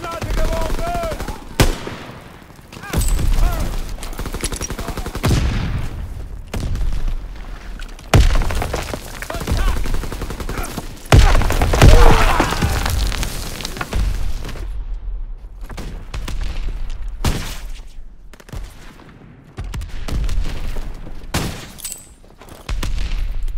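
Footsteps crunch through snow.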